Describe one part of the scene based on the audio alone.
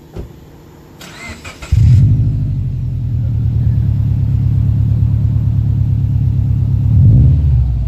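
A car engine starts with a crank and settles into a loud, deep exhaust rumble.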